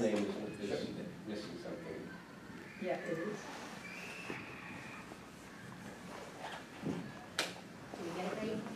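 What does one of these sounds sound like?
A man speaks calmly, slightly distant, in a room with some echo.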